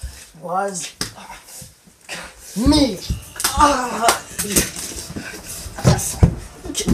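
Bodies thump and scuffle on a wooden floor.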